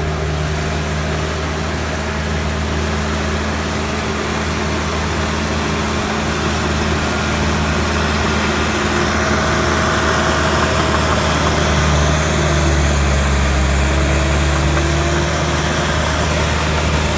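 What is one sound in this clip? Steel tracks clank and squeak as a bulldozer crawls.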